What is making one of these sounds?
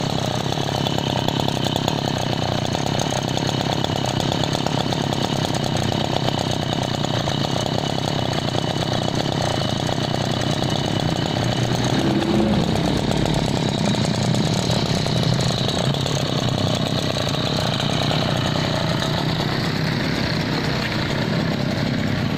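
A small two-stroke engine idles with a steady, rattling buzz close by.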